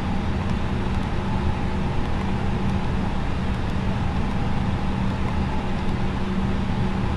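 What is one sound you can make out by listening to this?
An aircraft's engines drone with a steady low hum inside the cockpit.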